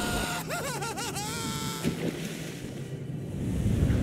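Water splashes as a body plunges into a pool.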